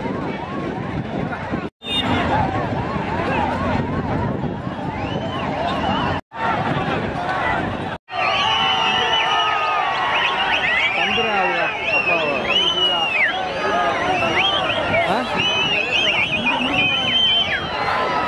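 A large outdoor crowd shouts and cheers.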